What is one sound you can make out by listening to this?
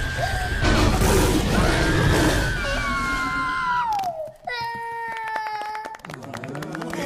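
A toddler girl screams.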